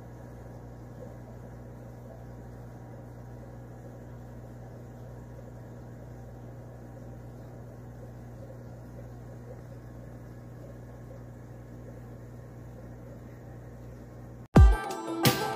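Air bubbles bubble softly and steadily through water.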